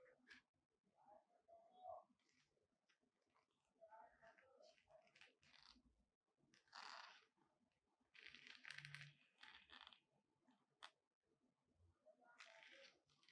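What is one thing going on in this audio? Gloved hands crinkle and rustle a plastic blister package.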